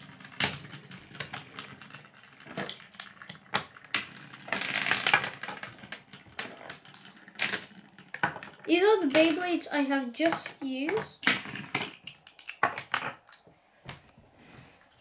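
Spinning tops whir and clatter on a plastic tray.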